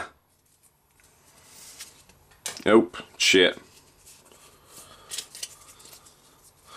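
Cardboard playing cards rustle and slide against each other between hands.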